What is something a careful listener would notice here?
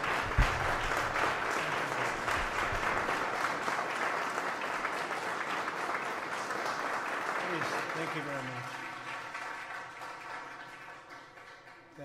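A crowd applauds loudly in a large echoing hall, and the clapping slowly fades.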